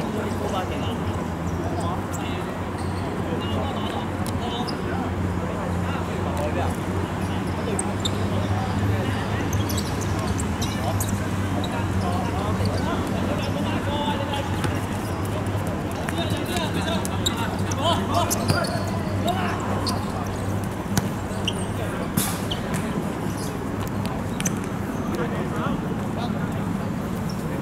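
Young men call out to each other across an outdoor court.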